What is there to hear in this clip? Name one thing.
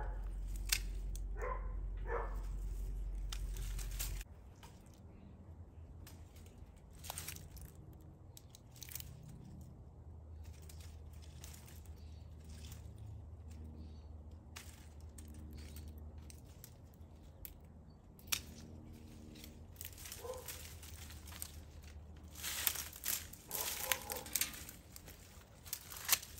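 Leaves and twigs rustle and snap as a plant is handled close by.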